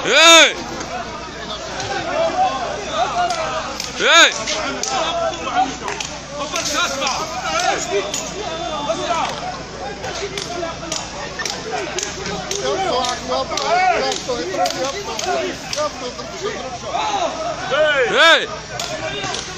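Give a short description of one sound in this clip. A man nearby shouts loudly in short bursts.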